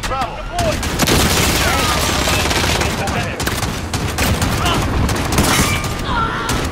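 A mounted gun fires in heavy bursts.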